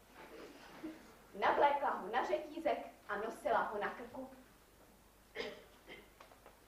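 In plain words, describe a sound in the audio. A young woman speaks out with expression, her voice echoing slightly.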